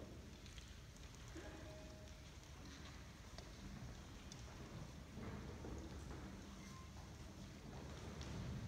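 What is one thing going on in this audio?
A concert band plays softly in a large, echoing hall.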